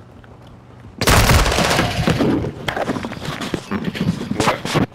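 Rapid gunshots ring out loudly.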